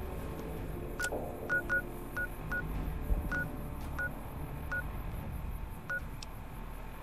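A menu clicks and beeps in short tones as its pages change.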